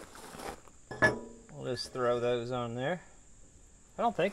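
A metal plate clanks against steel.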